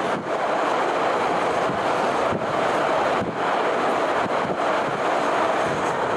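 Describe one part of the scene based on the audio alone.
A train clatters across a metal bridge.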